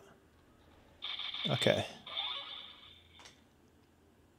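A handheld game console plays short electronic chimes from its speaker.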